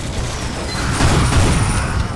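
A rocket launcher fires with a whoosh.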